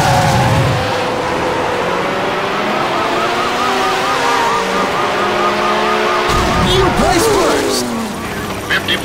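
A racing car engine revs and roars at high speed.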